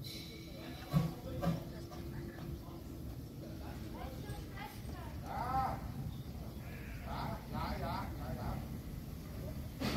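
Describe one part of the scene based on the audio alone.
A steam locomotive chuffs and rumbles slowly closer.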